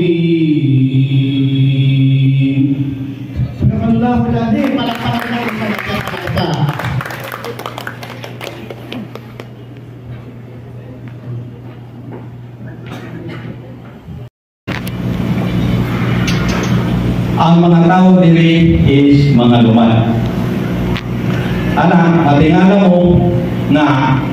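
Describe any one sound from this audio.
A young man speaks into a microphone, heard over loudspeakers in a large echoing hall.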